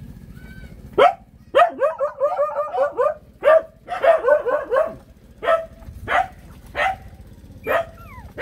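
A puppy whines and squeals in short, high cries.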